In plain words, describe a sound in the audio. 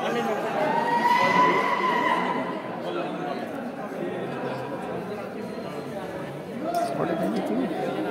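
A crowd of young people chatters and calls out.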